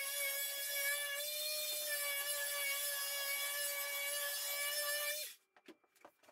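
A power planer whines steadily as it runs over wood.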